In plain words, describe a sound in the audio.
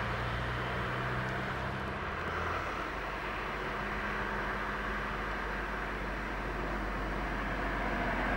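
A tram rumbles along its rails at a distance.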